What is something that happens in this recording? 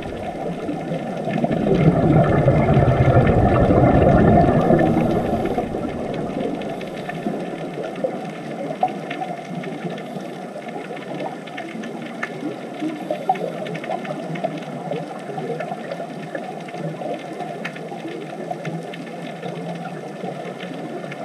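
Air bubbles rumble and gurgle close by underwater.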